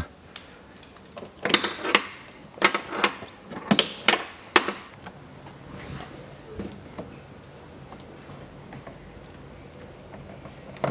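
Plastic wiring connectors click and rustle as they are handled.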